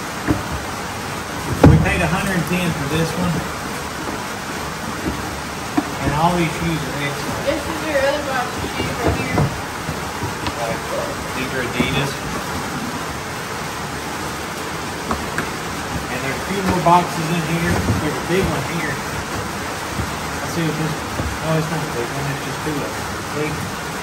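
Cardboard shoe boxes bump and rustle as they are handled.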